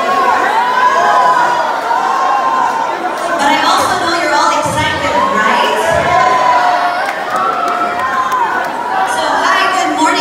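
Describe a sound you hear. A crowd of young people shouts and cheers.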